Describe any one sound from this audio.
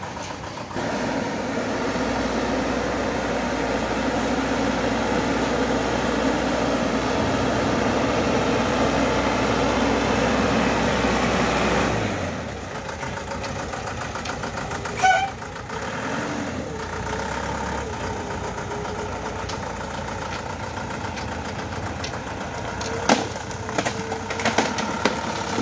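Truck tyres crunch over a rough dirt road.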